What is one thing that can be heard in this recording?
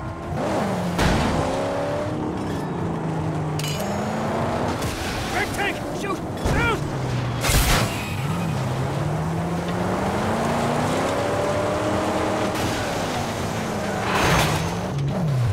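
Cars crash together with heavy metal bangs.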